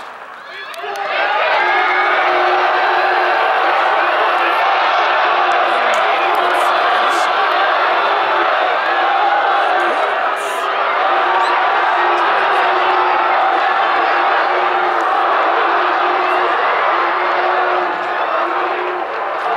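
A crowd cheers and shouts loudly from the stands.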